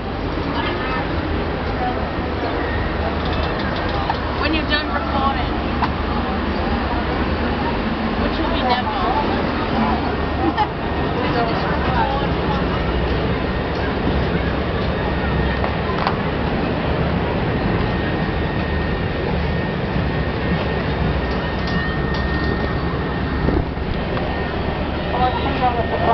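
A crowd murmurs and chatters below, heard from high up outdoors.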